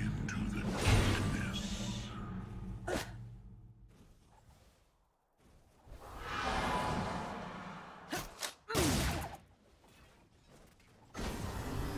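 Video game spell effects whoosh and burst.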